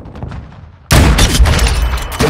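A sniper rifle fires a single loud, sharp shot.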